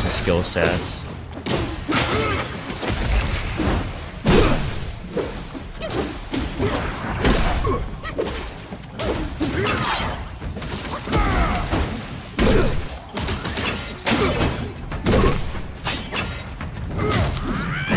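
A staff strikes a beast with heavy thuds.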